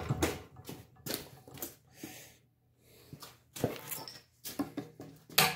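Metal tools clatter on a workbench.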